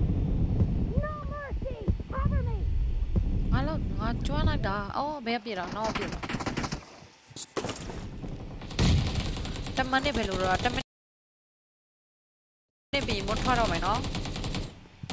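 A young woman talks with animation close to a headset microphone.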